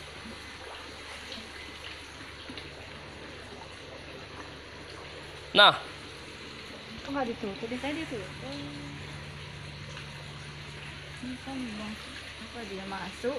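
Water trickles and bubbles softly into a tank.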